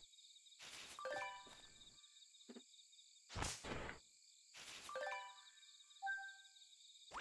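A bright game chime rings as items are picked up.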